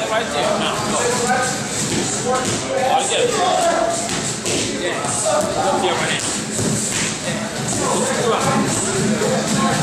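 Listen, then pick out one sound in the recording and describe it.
Boxing gloves smack into padded mitts in quick bursts.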